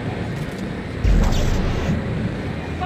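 A machine hums and whirs loudly.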